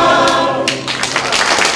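A choir of men and women sings in a large hall.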